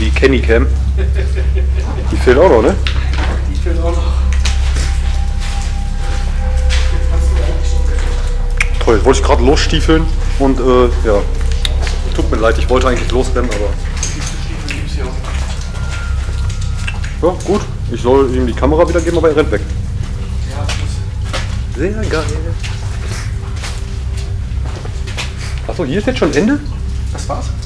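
A young man talks close by in an echoing tunnel.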